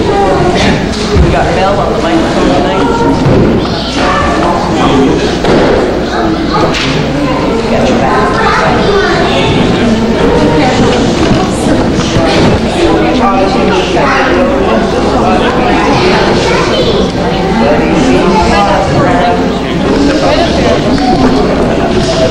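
Men and women talk at a distance in an echoing hall.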